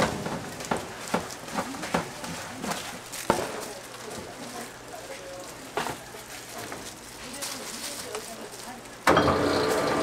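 Powder and scraps rustle and clatter as they are tipped into a metal tray.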